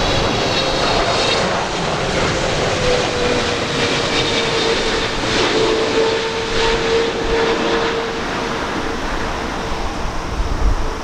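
A Boeing 777 twin-engine jet airliner roars and whines overhead on its landing approach.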